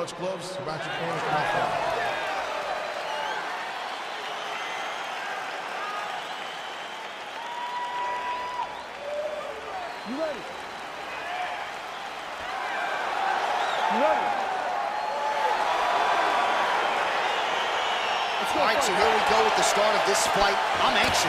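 A large crowd cheers and whistles in a large arena.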